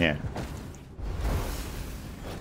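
A fiery blast bursts and roars.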